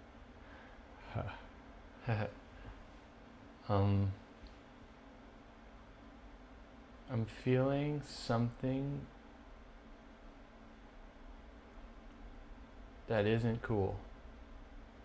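A man speaks calmly nearby in short bursts.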